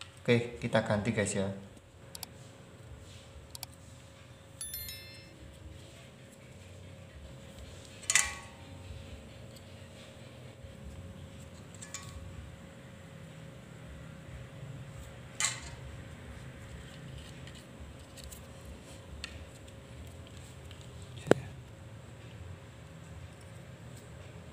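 Small plastic parts click and tap together as they are handled.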